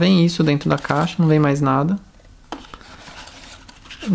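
A cardboard box insert scrapes as it is pulled out.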